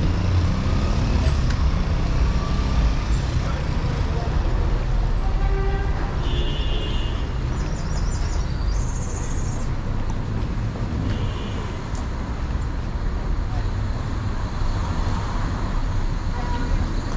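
Traffic hums steadily along a street outdoors.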